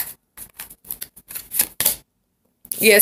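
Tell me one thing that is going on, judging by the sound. Playing cards shuffle and riffle with quick soft flicks.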